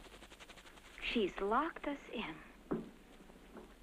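A young woman speaks anxiously.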